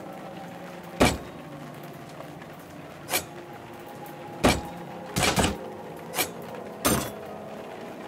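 A cleaver chops down hard on a wooden board several times.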